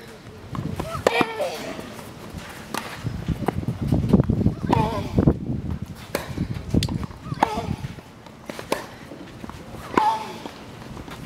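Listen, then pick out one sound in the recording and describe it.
A young woman grunts sharply as she hits the ball.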